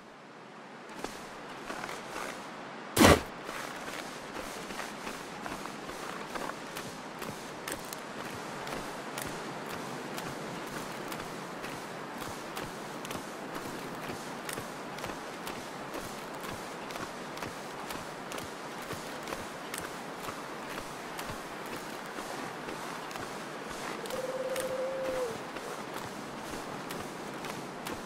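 Footsteps crunch steadily over snow and ice.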